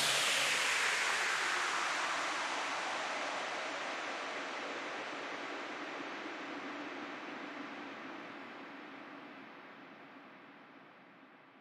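Electronic dance music plays and slowly fades out.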